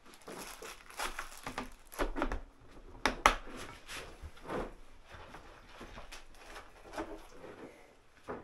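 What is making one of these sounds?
Small metal tools clink and clatter as they are handled.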